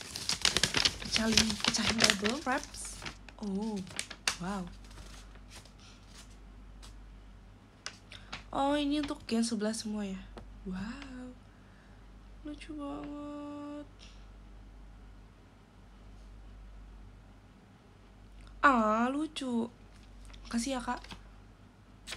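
A young woman speaks softly and close by, in short bursts with pauses.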